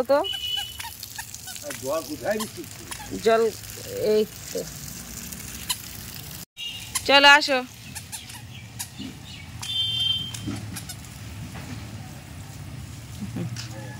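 Water sprays from a garden hose onto the ground.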